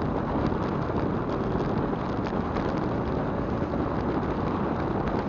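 Wind rumbles and buffets loudly against a moving vehicle.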